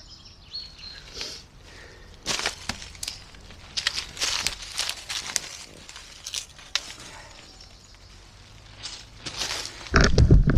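Dry leaves crunch underfoot.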